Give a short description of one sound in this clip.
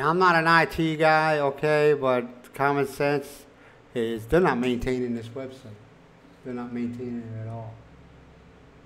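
An older man talks with animation close to a microphone.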